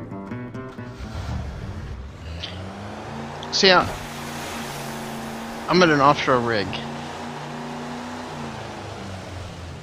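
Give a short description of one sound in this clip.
A speedboat engine drones and revs over the water.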